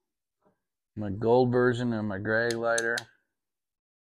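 An older man speaks calmly and close up.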